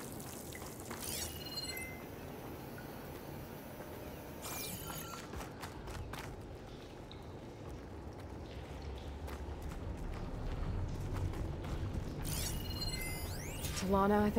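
A bright electronic chime sweeps and pings.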